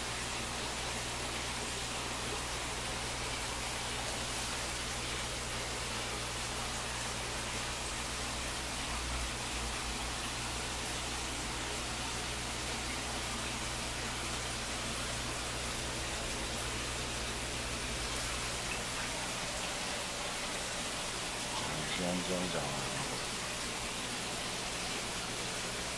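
Air bubbles fizz and hiss steadily in water.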